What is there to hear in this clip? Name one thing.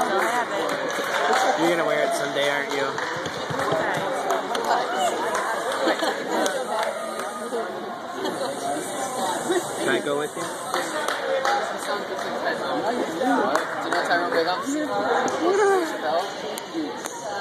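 A young audience chatters in a large echoing hall.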